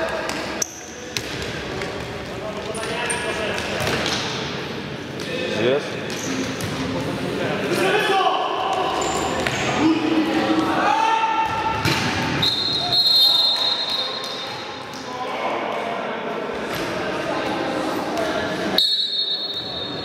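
Young men shout and call out across a large echoing hall.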